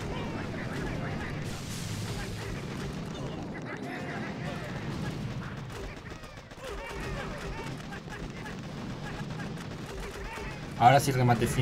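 Guns fire and shells explode in a battle game.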